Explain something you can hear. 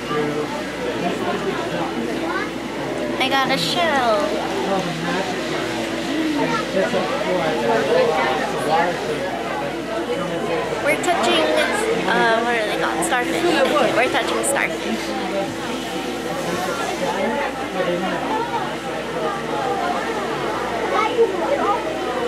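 A crowd of people murmurs in an echoing room.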